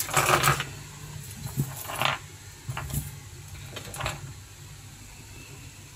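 Small plastic items clack and rattle as a hand handles them.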